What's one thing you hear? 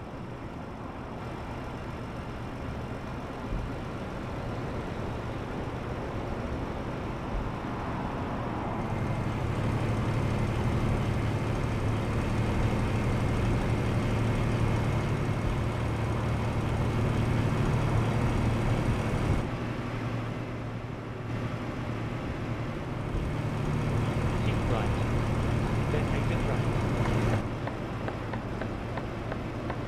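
A diesel truck engine drones from inside the cab while cruising on a highway.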